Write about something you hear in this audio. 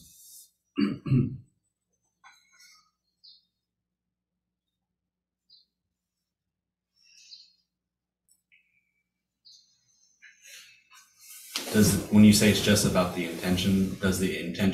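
An elderly man speaks calmly through an online call.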